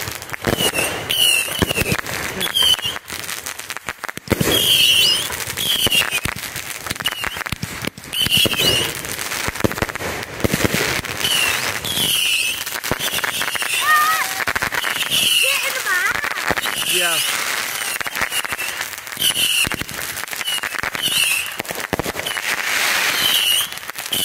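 Fireworks burst with booming bangs.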